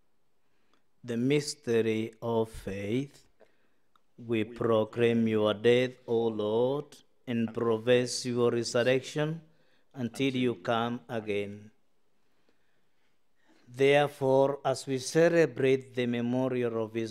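A man chants slowly through a microphone.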